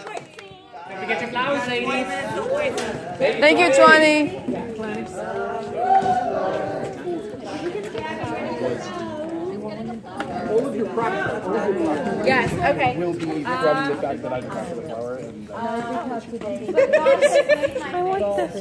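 Men and women chat and laugh nearby, with many voices overlapping.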